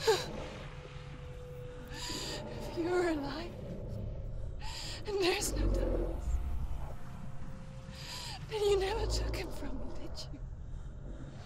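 A young woman speaks in a strained, trembling voice close by.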